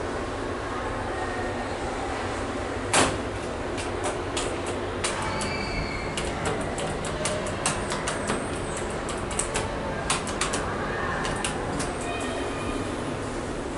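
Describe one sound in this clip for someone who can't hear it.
Elevator doors slide with a soft rumble.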